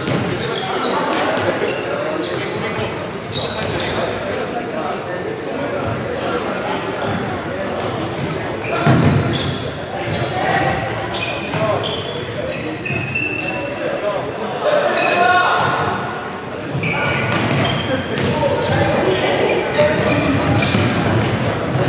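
A ball is kicked with sharp thumps.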